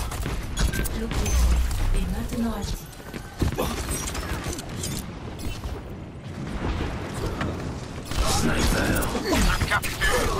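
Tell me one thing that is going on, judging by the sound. Video game gunfire cracks in quick bursts.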